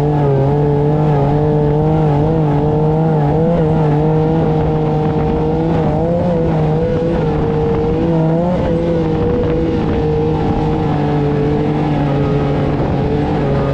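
A buggy engine roars steadily, its pitch rising and dipping.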